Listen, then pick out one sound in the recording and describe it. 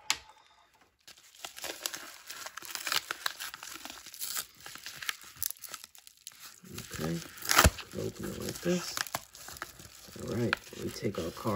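A padded paper mailer crinkles and tears as it is pulled open.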